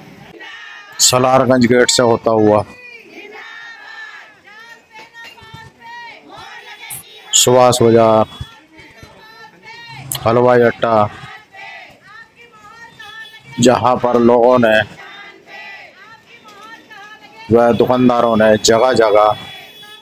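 A group of women chant slogans loudly in short, repeated bursts.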